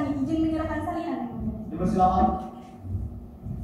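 A woman speaks briefly through a microphone in an echoing room.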